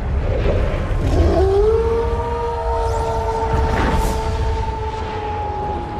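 A fiery streak roars through the sky.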